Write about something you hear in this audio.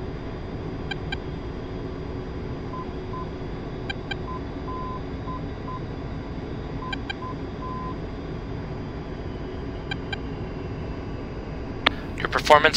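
A jet engine roars steadily, heard from inside a cockpit.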